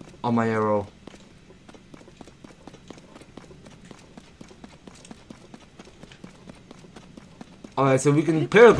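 Quick footsteps patter over hard ground.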